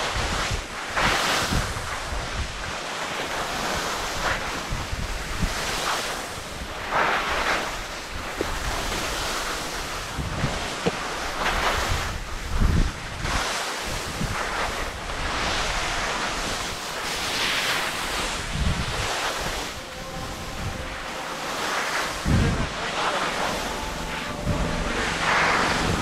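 Skis scrape and hiss over packed snow in bursts.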